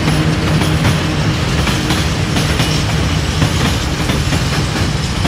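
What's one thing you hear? An electric locomotive hums loudly as it passes close by.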